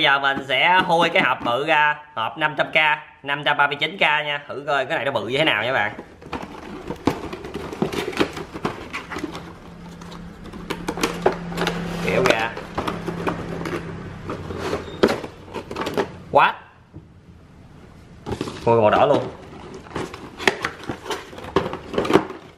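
Cardboard packaging scrapes and rustles as it is handled and opened.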